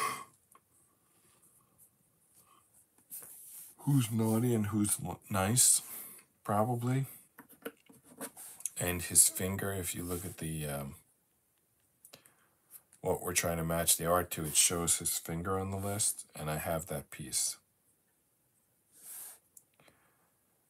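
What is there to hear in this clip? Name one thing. Jigsaw puzzle pieces tap and slide softly on a tabletop.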